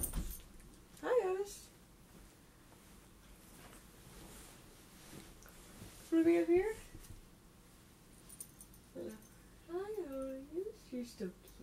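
A teenage girl speaks up close, in short bursts with lively, rising and falling pitch.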